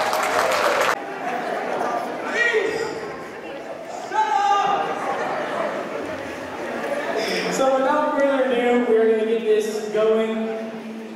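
A group of young people sing together.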